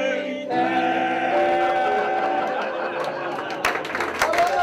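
Two men sing loudly together, close by.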